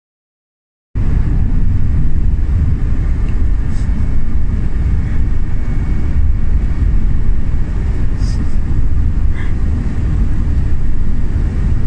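A vehicle engine rumbles steadily from inside the vehicle.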